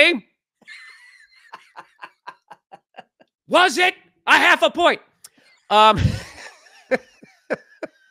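A man laughs loudly over an online call.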